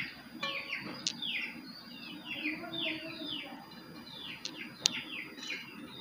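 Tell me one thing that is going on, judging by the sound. Water pours from a metal cup onto a metal plate.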